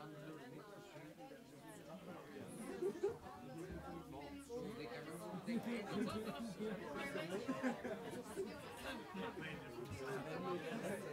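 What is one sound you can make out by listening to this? A small band plays jazz in a room.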